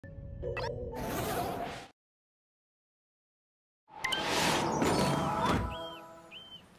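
A video game plays a whooshing transition sound.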